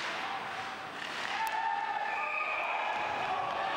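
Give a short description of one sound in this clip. A crowd cheers in a large echoing arena, rising loudly after a goal.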